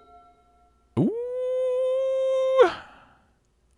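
A digital card game plays a sustained rising electronic tone.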